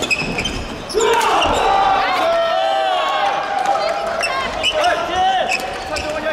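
Sneakers squeak sharply on a court floor in a large echoing hall.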